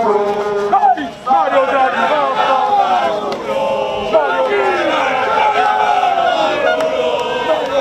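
A man shouts through a megaphone.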